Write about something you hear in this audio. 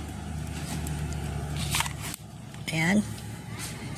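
A plug is pushed into a socket with a click.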